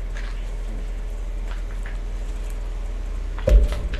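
A young man gulps down a drink.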